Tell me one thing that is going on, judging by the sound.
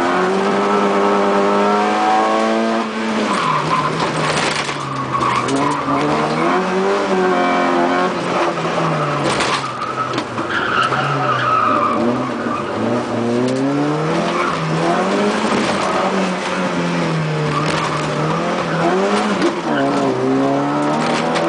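A rally car's engine roars and revs up and down from inside the car.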